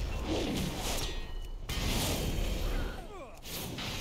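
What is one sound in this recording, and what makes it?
Magic blasts whoosh and crackle loudly in a fight.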